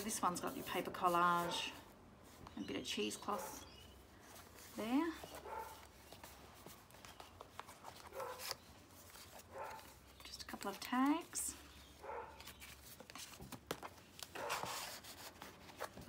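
Paper rustles and crinkles as pages and tags are handled.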